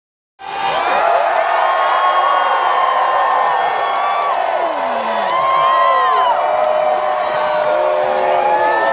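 An orchestra plays loudly through loudspeakers.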